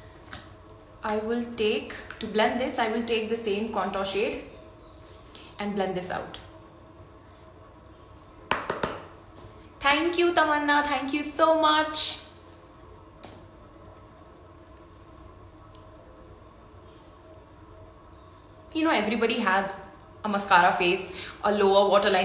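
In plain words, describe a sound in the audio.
A young woman talks close to the microphone in a lively way, with pauses.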